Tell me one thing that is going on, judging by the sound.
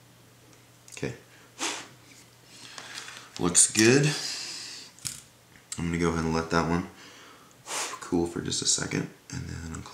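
Small metal clamps click and rattle as they are adjusted by hand.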